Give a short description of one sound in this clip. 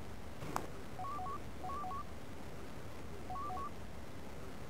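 Short electronic two-tone beeps chirp in quick bursts.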